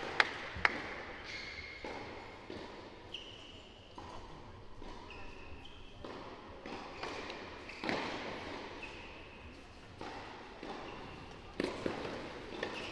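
Tennis balls are struck hard with rackets in an echoing indoor hall.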